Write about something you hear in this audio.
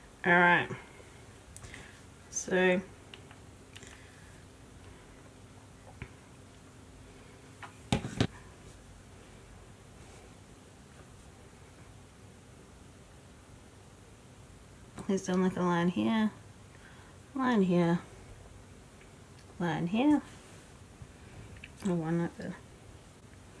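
A young woman speaks softly and close to a microphone, in short phrases.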